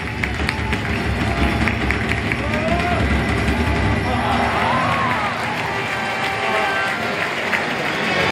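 A large crowd chatters and cheers in an open stadium.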